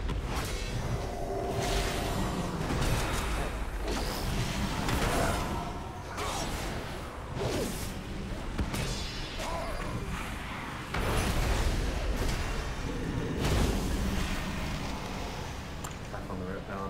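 Spell effects whoosh and crackle in a fast fight.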